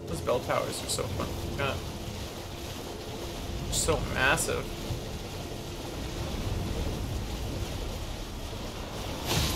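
Water splashes under a galloping horse's hooves.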